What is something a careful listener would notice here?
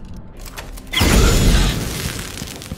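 A crossbow fires with a sharp thwack.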